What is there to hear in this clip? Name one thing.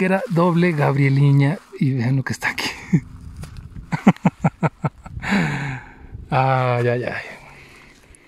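Gloved fingers rustle through dry grass.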